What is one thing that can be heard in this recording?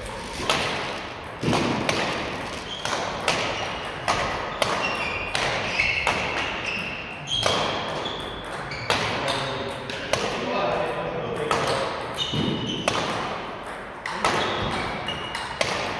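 Rackets strike a shuttlecock again and again, echoing in a large hall.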